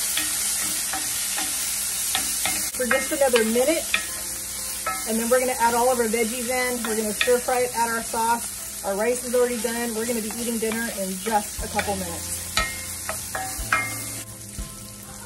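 Meat sizzles in a hot pan.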